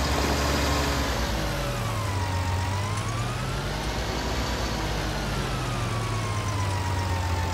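A tractor engine revs up and down.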